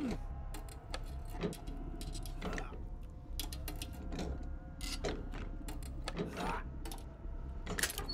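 Hands rummage through items in a wooden chest.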